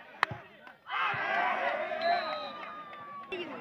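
A crowd cheers loudly after a kick.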